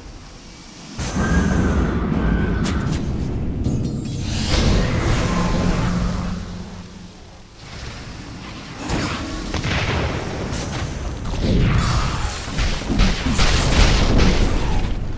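Magic spells crackle and burst during a fight.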